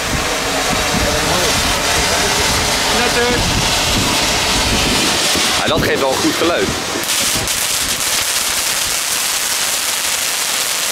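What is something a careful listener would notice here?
A firework fountain hisses and crackles loudly close by.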